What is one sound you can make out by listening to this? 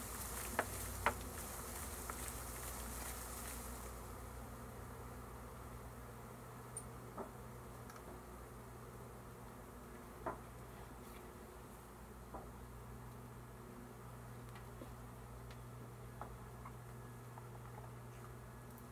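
Bees buzz steadily outdoors.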